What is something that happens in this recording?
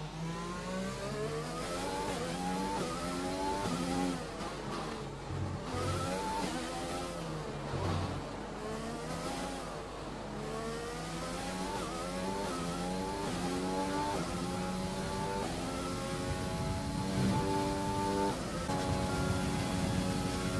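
A racing car engine screams, rising in pitch through each gear and dropping sharply at each shift and braking.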